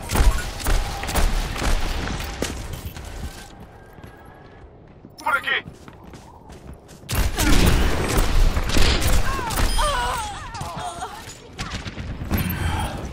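Heavy guns fire in rapid, loud bursts.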